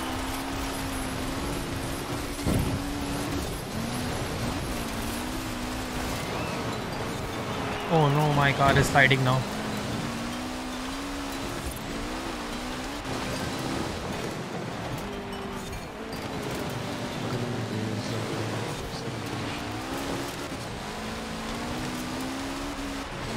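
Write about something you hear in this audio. A car engine drones and revs steadily.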